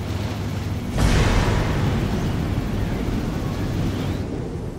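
A rocket engine roars with a deep rushing blast.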